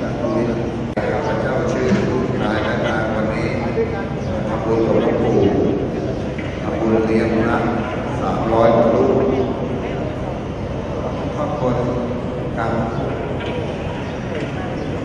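A man speaks into a microphone through loudspeakers in an echoing hall.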